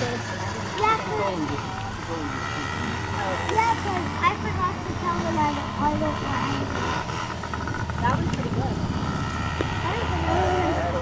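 A small dirt bike engine buzzes steadily at a distance.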